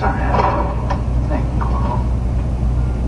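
A man speaks urgently nearby.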